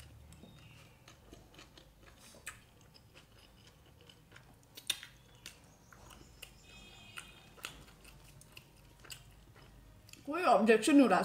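A young woman chews food close to a microphone.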